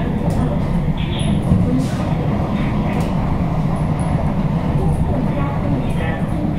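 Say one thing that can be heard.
An electric metro train rumbles along the track at speed, heard from inside the carriage.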